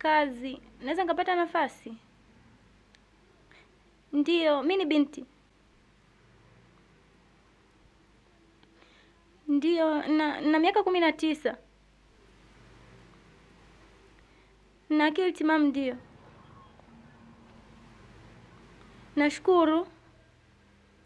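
A young woman speaks on a phone close by, in short pleading bursts with long pauses.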